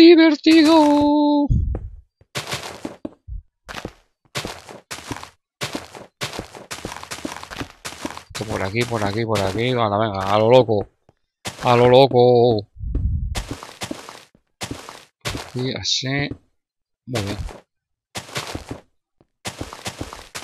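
Blocks crunch and pop as they are broken, in quick taps.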